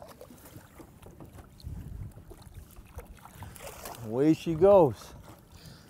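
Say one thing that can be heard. Water splashes as a fish is released.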